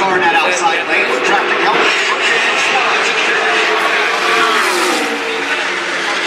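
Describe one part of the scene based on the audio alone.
Race car engines roar loudly as a pack of cars speeds past.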